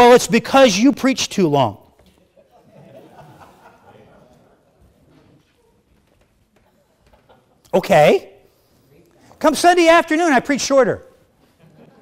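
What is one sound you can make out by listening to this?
A middle-aged man speaks into a microphone in a large echoing hall.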